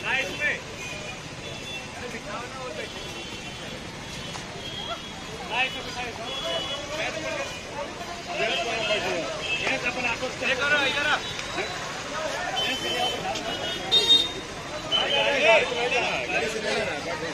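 Several men and women talk nearby outdoors, their voices mixing.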